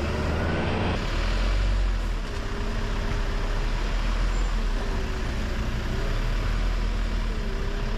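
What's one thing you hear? A truck engine idles close by with a low rumble.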